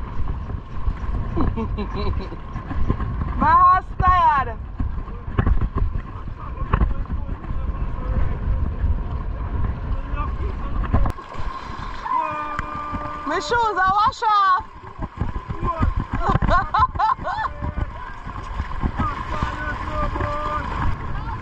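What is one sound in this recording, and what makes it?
Horses wade and splash through shallow water.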